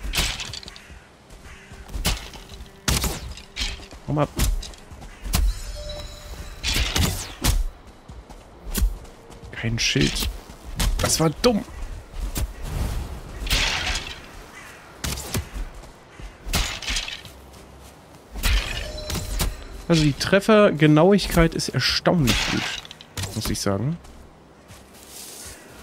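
Weapons clash and thud.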